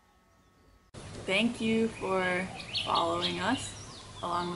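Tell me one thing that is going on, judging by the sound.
A young woman talks cheerfully and close by into a microphone.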